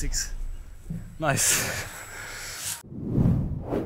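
A man laughs close by, outdoors.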